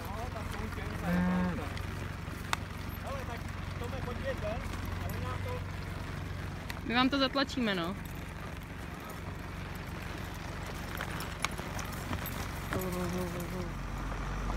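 A man shouts loudly to drive cattle.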